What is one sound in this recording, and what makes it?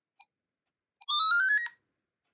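A small electronic speaker plays a quick rising run of beeping tones.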